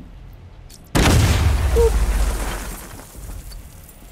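A loud explosion bursts and rumbles away.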